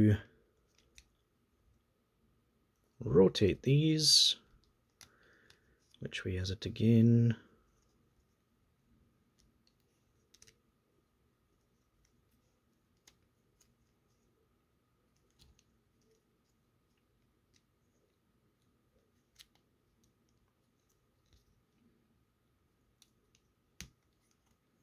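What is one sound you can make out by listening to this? Plastic toy parts click and snap softly as they are handled.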